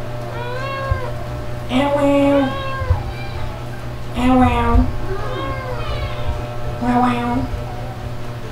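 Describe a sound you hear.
A kitten mews repeatedly, close by, in high thin cries.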